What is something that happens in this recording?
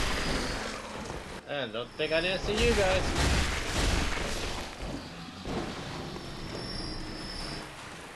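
Blades slash and strike with heavy thuds in a fight.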